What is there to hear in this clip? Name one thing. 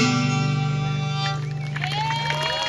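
An acoustic guitar rings out a final chord.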